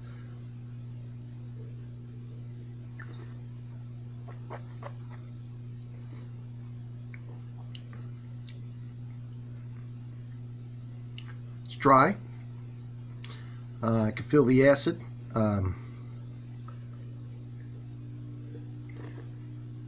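A man sips and slurps wine.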